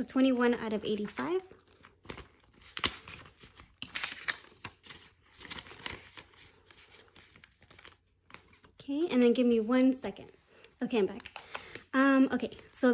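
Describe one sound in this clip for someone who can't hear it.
Paper banknotes rustle and crinkle in hands.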